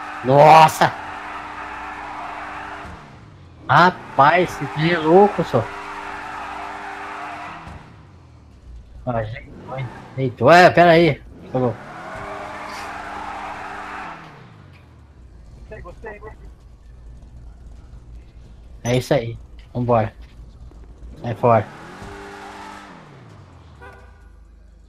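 A car engine idles and revs up and down.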